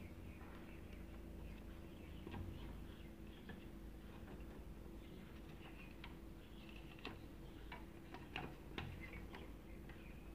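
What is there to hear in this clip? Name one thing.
A circuit board clicks and rattles as hands turn it over.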